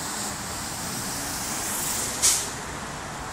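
A truck engine rumbles close by as it drives past.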